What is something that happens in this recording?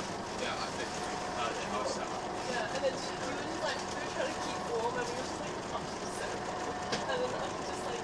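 A vehicle engine hums steadily inside the cabin.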